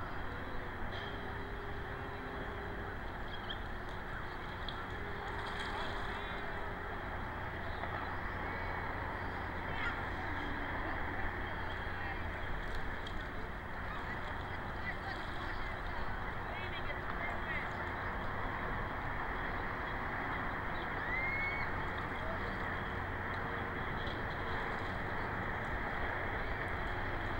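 Water birds call and chatter across open water.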